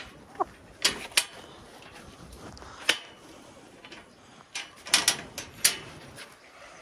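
Metal wire rattles and clanks under a hand.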